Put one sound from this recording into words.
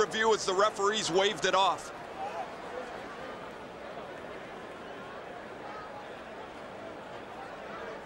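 A crowd roars in a large arena.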